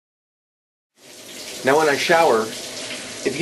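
A shower sprays water in a small room.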